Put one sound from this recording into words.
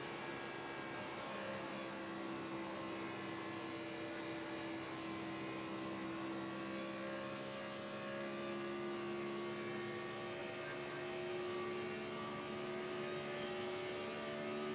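A race car engine roars steadily at high speed, its pitch slowly rising.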